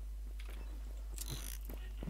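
A keypad beeps.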